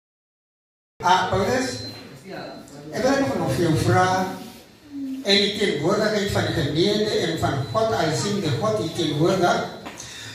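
A man speaks loudly into a microphone, heard through a loudspeaker in a reverberant room.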